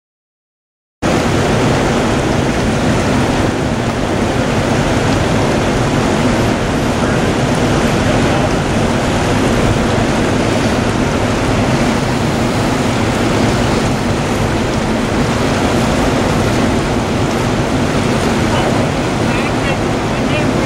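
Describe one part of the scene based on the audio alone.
A fast river rushes and splashes loudly outdoors.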